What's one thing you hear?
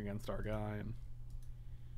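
A man speaks briefly and close up.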